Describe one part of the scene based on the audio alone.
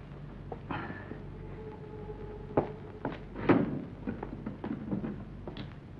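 Footsteps walk away across a floor.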